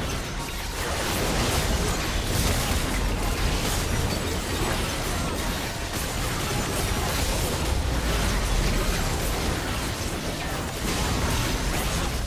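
Game spells crackle, whoosh and boom in a busy fight.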